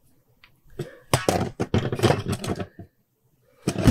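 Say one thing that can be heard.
A metal level scrapes across a concrete slab.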